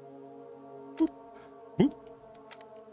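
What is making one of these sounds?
Metal latches on a case click open.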